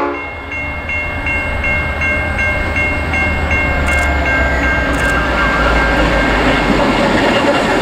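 Several diesel-electric locomotives rumble past.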